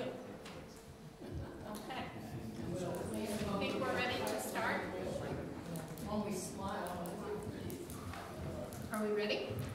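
A middle-aged woman speaks calmly in a room.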